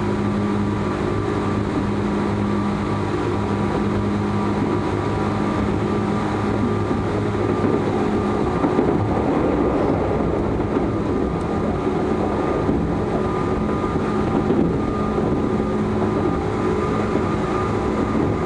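A train's motor hums with a steady whine.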